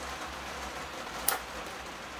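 Small scissors snip.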